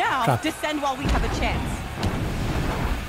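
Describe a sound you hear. An explosion bursts with a deep boom.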